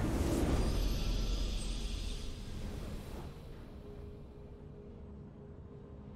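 A victory fanfare plays.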